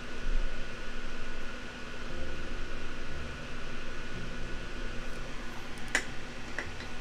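A soldering iron clicks as it is set into its holder.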